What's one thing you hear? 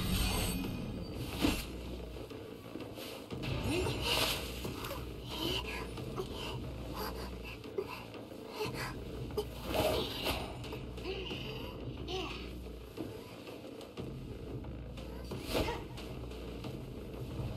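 Whooshing strikes and clattering effects ring out in bursts.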